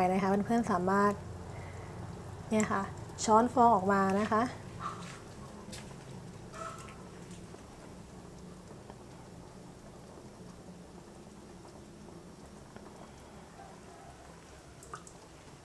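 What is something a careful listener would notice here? Soup bubbles gently in a pot.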